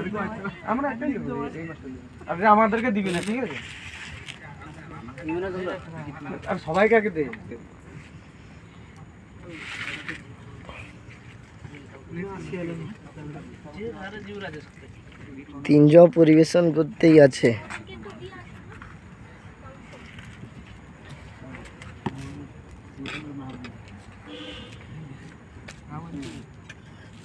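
Young men talk and call out nearby.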